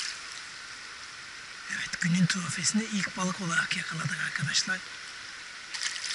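A net splashes through water.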